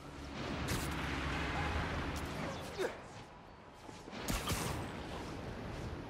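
Air rushes loudly past in swooping gusts.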